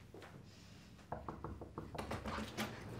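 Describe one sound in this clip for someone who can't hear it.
Knuckles knock on a door.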